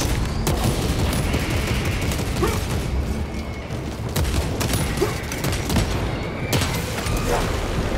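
Heavy gunfire bursts out in loud volleys.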